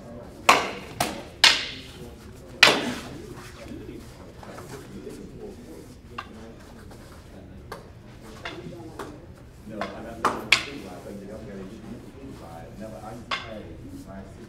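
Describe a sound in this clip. Wooden practice swords clack sharply together in a bare, echoing room.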